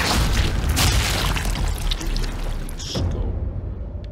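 A loud gunshot blasts and echoes.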